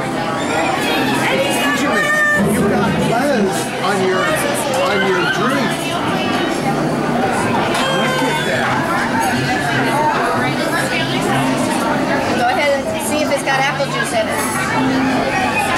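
A young boy talks and laughs excitedly.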